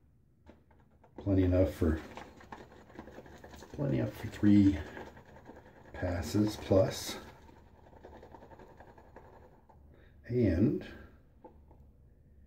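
A shaving brush swirls lather in a mug.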